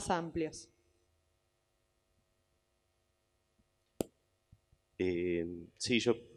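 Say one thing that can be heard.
A man speaks into a microphone in short bursts.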